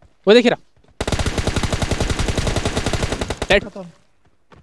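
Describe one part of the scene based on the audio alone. A rifle fires in a rapid automatic burst.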